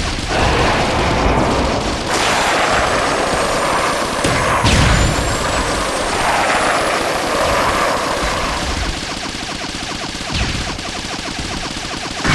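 A tank cannon fires rapid shots.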